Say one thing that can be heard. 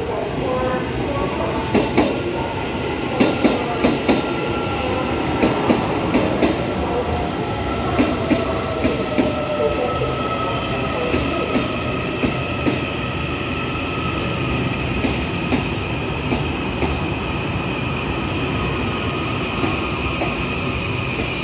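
A train rumbles steadily along the tracks close by.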